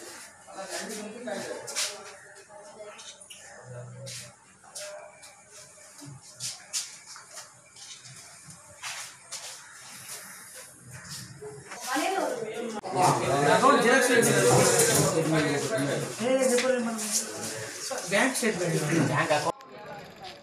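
Paper rustles as papers are handed over.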